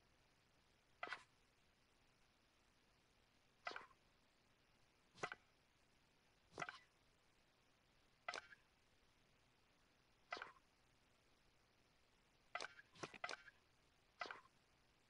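A game menu gives short whooshing clicks each time the selection moves.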